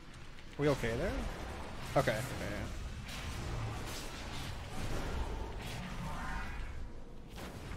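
Fantasy game spell effects whoosh and chime.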